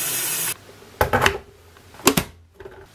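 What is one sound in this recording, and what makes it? A kettle lid snaps shut with a plastic click.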